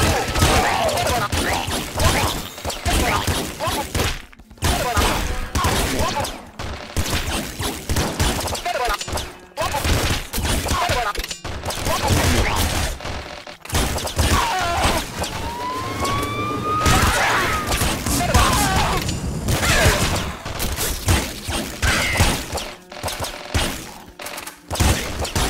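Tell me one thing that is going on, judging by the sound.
Retro video game guns fire in rapid electronic bursts.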